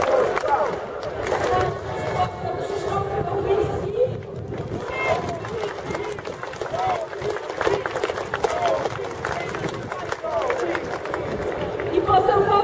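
A crowd murmurs and calls out outdoors.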